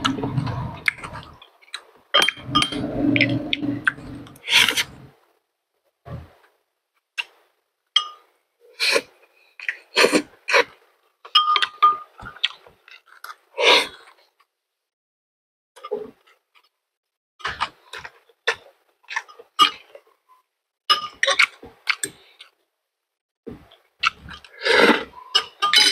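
A man chews food noisily with wet, smacking sounds close to a microphone.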